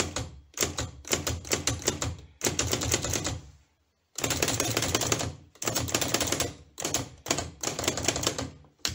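Typewriter keys strike in rapid bursts of sharp clacks.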